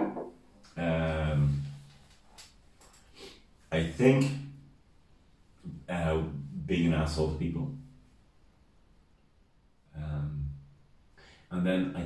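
A middle-aged man speaks with animation, close to a microphone, in short bursts with pauses.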